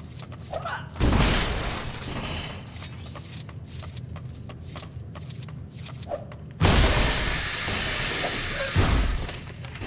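Objects smash apart in loud bursts.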